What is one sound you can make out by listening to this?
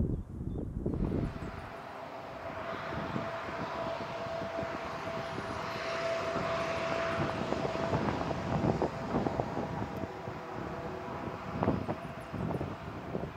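A jet airliner's engines roar and whine steadily close by.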